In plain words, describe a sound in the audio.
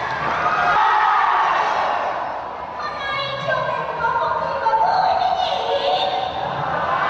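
A young woman sings through a microphone over loudspeakers.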